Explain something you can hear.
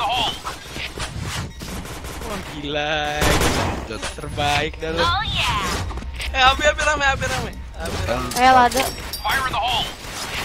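Gunshots crack from a sniper rifle.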